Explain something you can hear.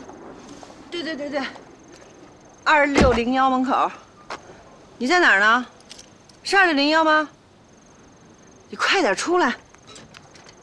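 A young woman talks on a phone with animation, close by.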